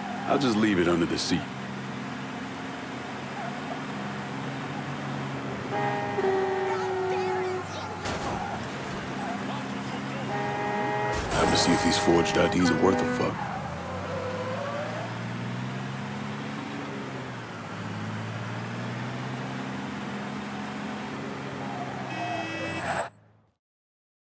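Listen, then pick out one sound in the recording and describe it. A truck engine drones and revs up and down as it drives.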